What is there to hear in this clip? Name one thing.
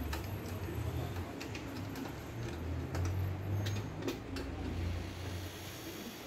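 A screwdriver scrapes and clicks against a metal panel.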